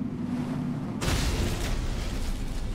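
A magical burst whooshes loudly.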